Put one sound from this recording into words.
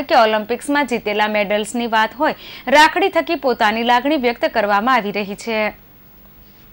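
A young woman speaks briskly and clearly.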